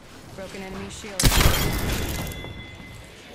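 Heavy metal doors slide open with a mechanical whoosh.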